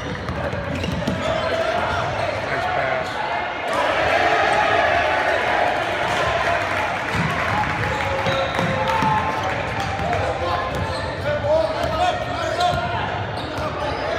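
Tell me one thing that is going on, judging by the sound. A crowd of spectators murmurs and calls out in a large echoing hall.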